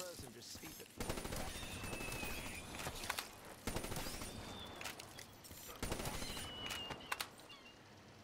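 Rapid gunfire blasts in bursts.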